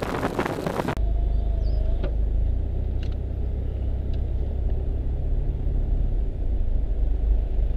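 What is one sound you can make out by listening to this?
A car engine hums low and steady while driving.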